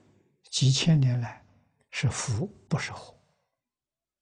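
An elderly man speaks calmly and close through a clip-on microphone.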